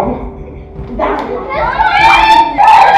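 Young girls squeal and laugh nearby.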